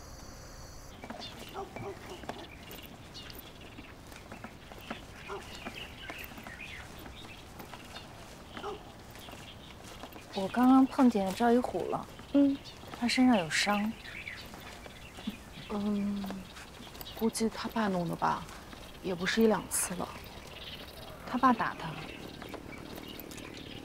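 Footsteps tap softly on a paved lane.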